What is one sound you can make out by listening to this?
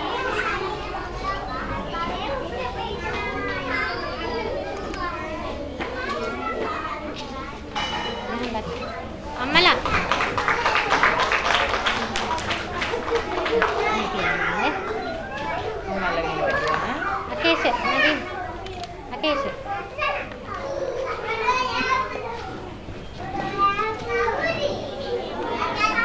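A crowd of young children chatters and murmurs nearby.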